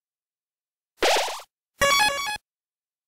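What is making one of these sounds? A bright electronic chime rings as a game file is saved.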